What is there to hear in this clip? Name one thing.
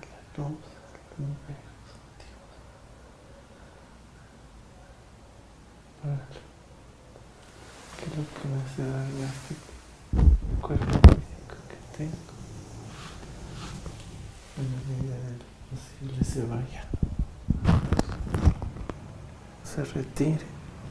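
A man speaks quietly and close by.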